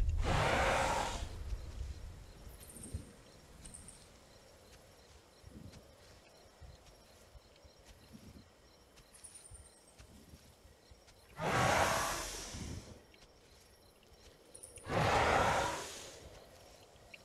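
A large creature snorts loudly in bursts.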